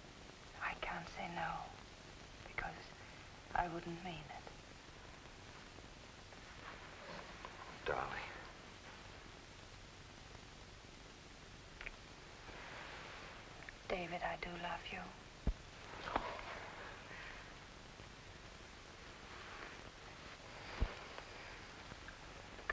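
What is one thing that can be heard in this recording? A woman speaks softly and earnestly, close by.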